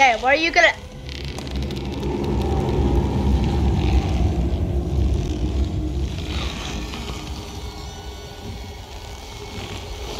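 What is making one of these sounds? A deep, eerie rumble swells and slowly fades as a long neck stretches out.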